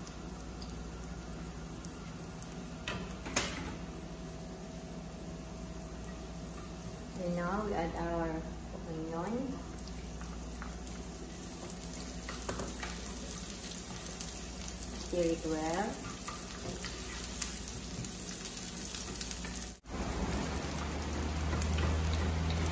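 Food sizzles steadily in hot oil in a pan.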